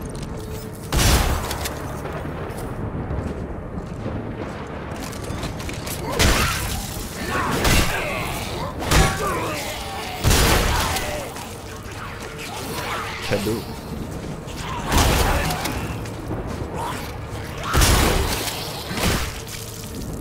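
Loud gunshots boom with echoing blasts.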